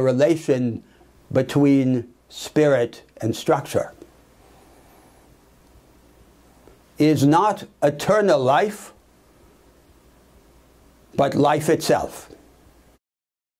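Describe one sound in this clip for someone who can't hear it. An elderly man speaks calmly and clearly into a close microphone, with pauses.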